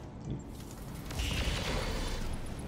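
Weapons fire with a loud rushing blast.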